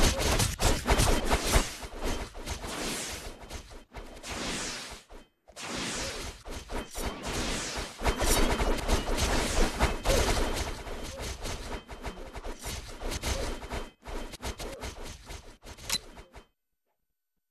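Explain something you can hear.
Swords swish and clash in quick bursts.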